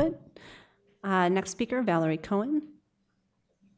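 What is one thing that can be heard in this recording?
A middle-aged woman speaks briefly into a microphone in reply.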